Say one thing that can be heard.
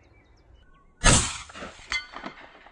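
A rifle fires a single loud shot that echoes outdoors.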